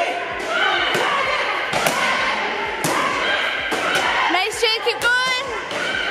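A foot kicks a training pad with sharp slaps.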